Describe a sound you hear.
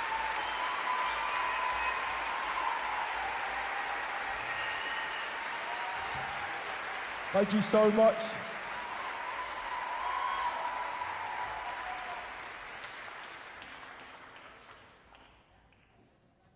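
An audience applauds loudly in a large echoing hall, then fades out.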